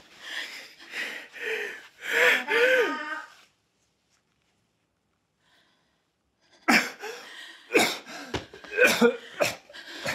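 A middle-aged man speaks urgently and with strain, close by.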